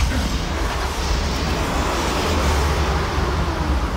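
A buggy's engine rumbles.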